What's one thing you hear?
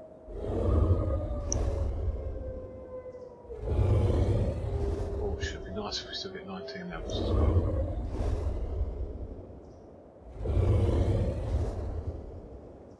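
A large animal snores in slow, deep, rumbling breaths.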